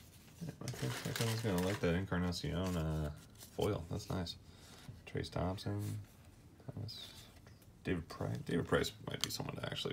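Trading cards flick and slide against each other.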